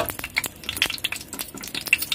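A spatula scrapes around a pan.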